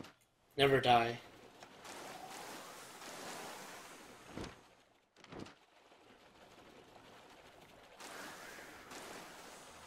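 Sea waves wash and lap steadily.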